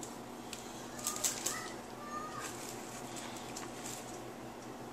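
Plastic bubble wrap rustles and crinkles as hands handle it.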